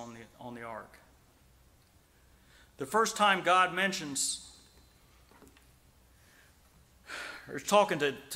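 A middle-aged man preaches with emphasis through a microphone, in bursts with pauses.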